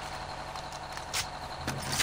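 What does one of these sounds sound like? A gun magazine clicks as it is reloaded.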